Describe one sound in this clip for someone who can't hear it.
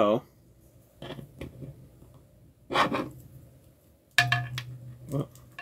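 Plastic toy parts click as they are snapped together.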